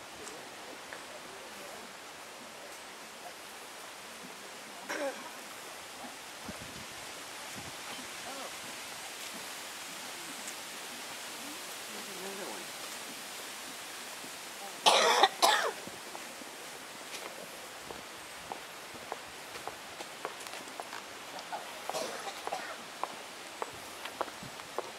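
Wind rustles through the leaves of trees outdoors.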